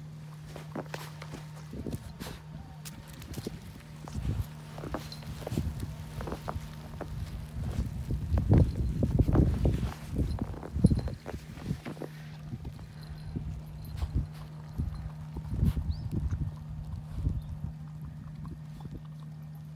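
A dog's paws crunch and scrape in snow.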